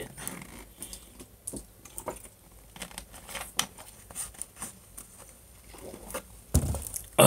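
A plastic bottle crinkles and clicks in a man's hands.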